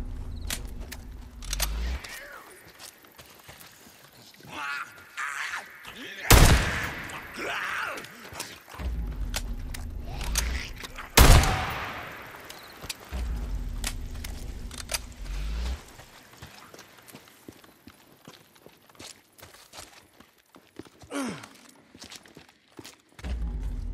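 Footsteps crunch over dry brush and gravel.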